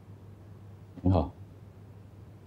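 A middle-aged man greets someone calmly.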